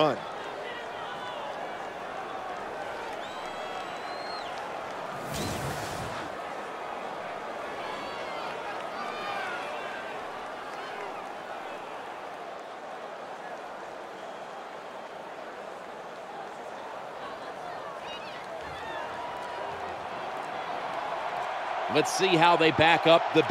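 A stadium crowd cheers and roars steadily.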